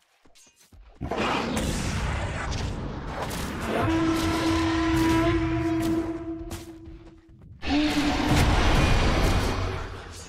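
Fantasy battle sounds of magic spells whoosh and crackle.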